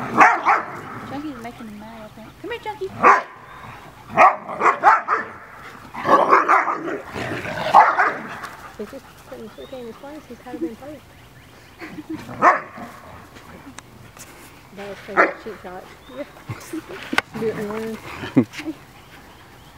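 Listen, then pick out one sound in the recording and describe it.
Dogs growl playfully as they wrestle.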